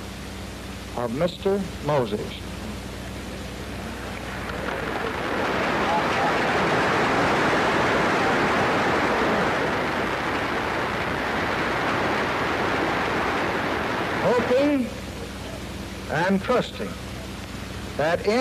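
An elderly man speaks slowly through a microphone outdoors.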